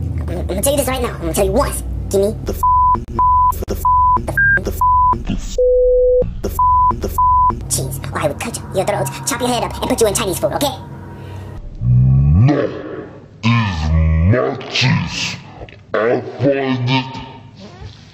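A man speaks in a high, silly cartoon voice, close by.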